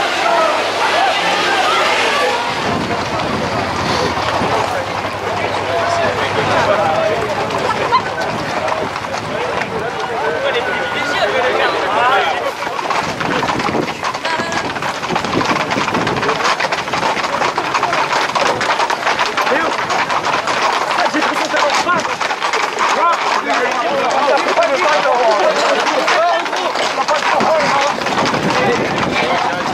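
A large crowd of young men chatters and shouts outdoors.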